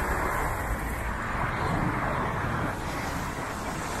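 A car drives past on a wet road with a hiss of tyres.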